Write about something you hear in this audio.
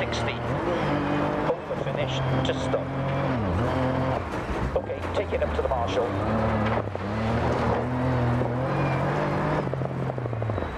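A rally car engine revs hard, rising and falling as gears change.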